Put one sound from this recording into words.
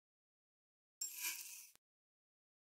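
A short soft electronic chime sounds.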